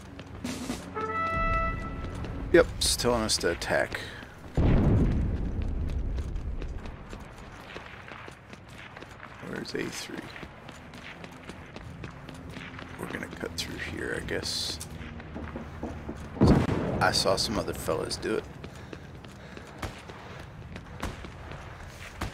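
Footsteps tread on hard ground.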